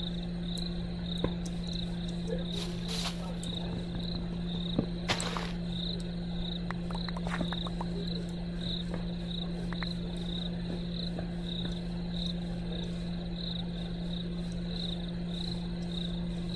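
Footsteps pad softly through grass.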